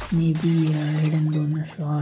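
A short cheerful game chime plays.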